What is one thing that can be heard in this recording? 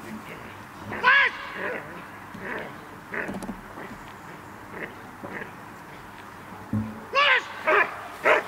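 A man shouts short commands outdoors.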